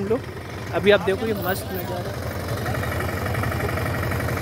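A truck engine idles nearby with a low rumble.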